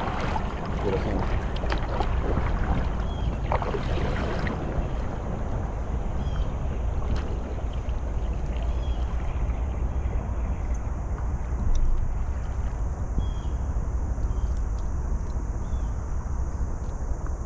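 A paddle splashes and swishes through water.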